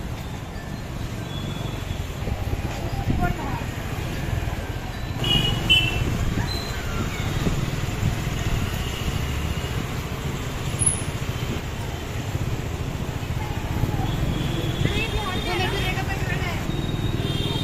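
Motorbike engines rumble and putter nearby on a busy street.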